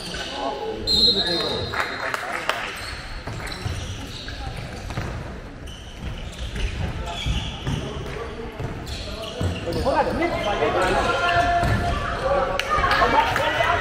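A handball bounces on a hard indoor court.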